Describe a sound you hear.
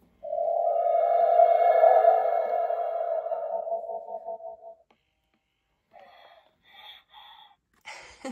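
An animatronic toy coos and babbles in a small electronic voice.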